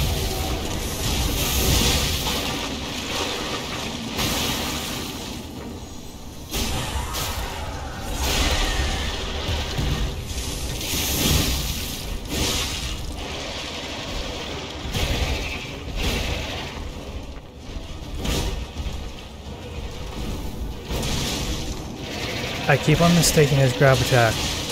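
A huge creature growls and roars.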